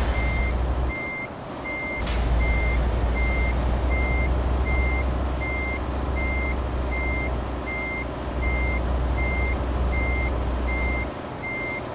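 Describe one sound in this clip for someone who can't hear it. A heavy truck engine rumbles low and steady.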